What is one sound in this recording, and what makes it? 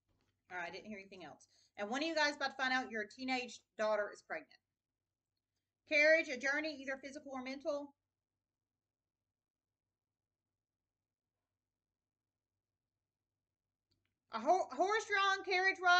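A woman talks calmly and close to a microphone, pausing now and then.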